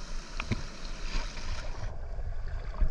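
Water splashes and rushes at the surface.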